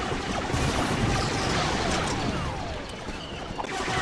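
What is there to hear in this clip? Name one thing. Energy bolts crackle as they strike a shield.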